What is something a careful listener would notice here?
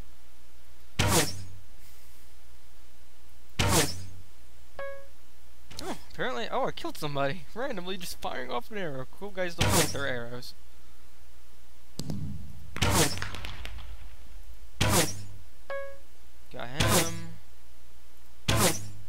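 A bow twangs sharply as arrows are loosed, again and again.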